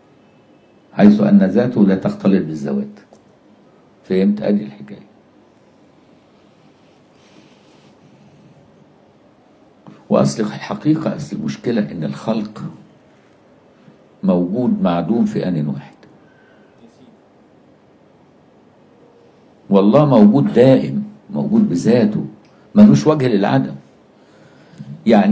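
An elderly man speaks slowly and earnestly into a close microphone, pausing between phrases.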